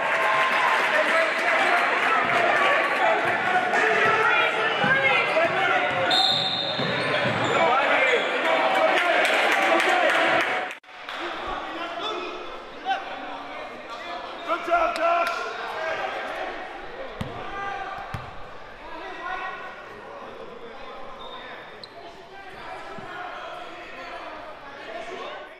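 A crowd cheers and chatters loudly in an echoing gym.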